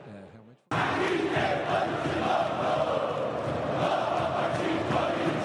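A huge stadium crowd sings and chants loudly together.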